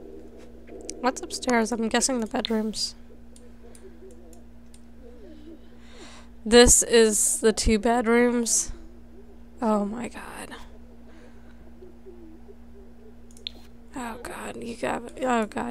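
A young woman talks with animation into a headset microphone, close by.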